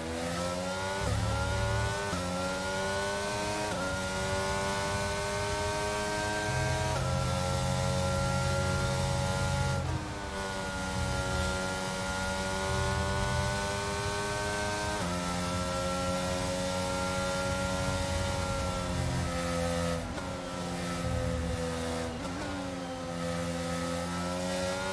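A racing car engine screams at high revs, shifting gears up and down.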